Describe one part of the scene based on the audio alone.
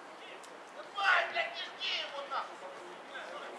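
Men shout across an open field.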